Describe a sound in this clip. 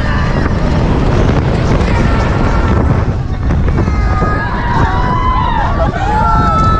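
Wind roars loudly past the microphone.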